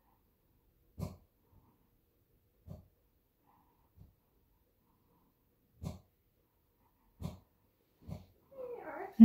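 Wooden blocks knock and clack softly.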